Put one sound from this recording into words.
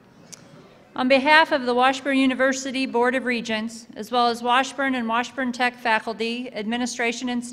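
A woman speaks calmly and clearly through a microphone in a large echoing hall.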